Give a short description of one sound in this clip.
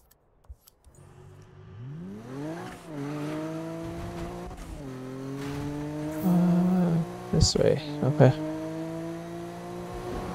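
A car engine revs up and shifts through gears at speed.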